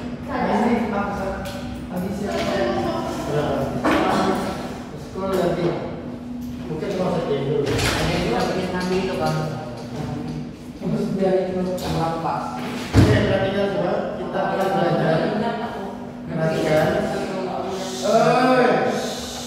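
Boys chatter among themselves close by.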